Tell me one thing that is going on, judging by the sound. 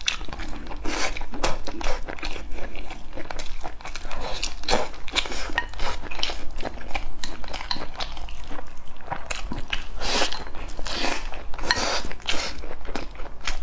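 Chopsticks clink against a porcelain bowl.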